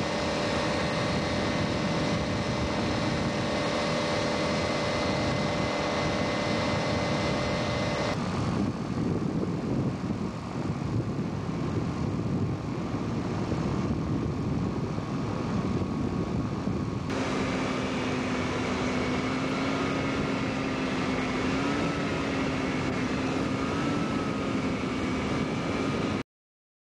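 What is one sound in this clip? Wind rushes loudly past in the open air.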